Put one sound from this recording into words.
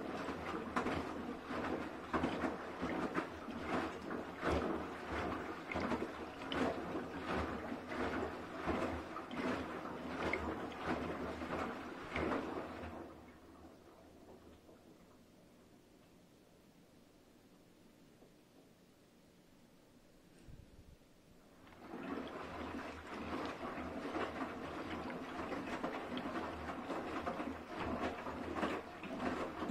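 A washing machine motor hums steadily.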